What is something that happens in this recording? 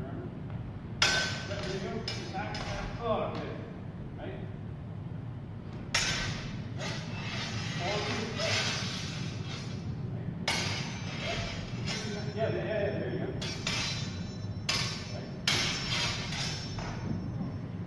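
Steel practice swords clash and clang sharply in an echoing hall.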